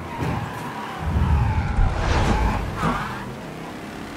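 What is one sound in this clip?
Tyres screech as a car swerves around a corner.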